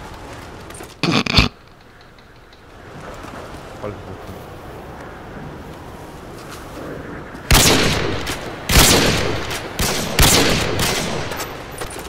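Gunshots crack and boom loudly in quick bursts.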